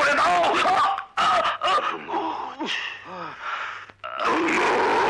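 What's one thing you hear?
A man moans and sobs in pain.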